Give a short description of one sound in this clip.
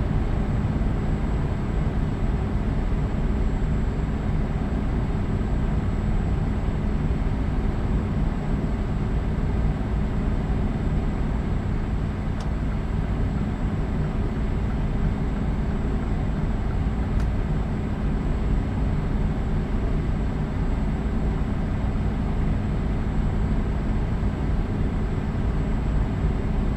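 A truck engine hums steadily while cruising on a highway.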